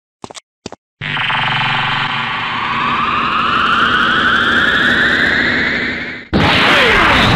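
An energy charge builds with a rising, humming whoosh.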